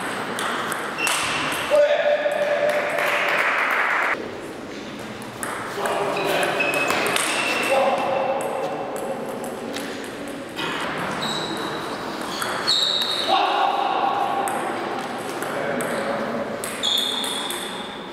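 Table tennis balls click sharply off paddles and tables in a large echoing hall.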